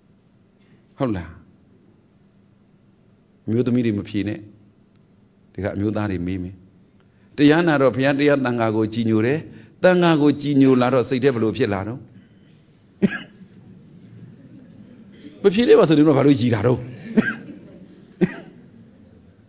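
A man speaks calmly and slowly into a microphone, with pauses.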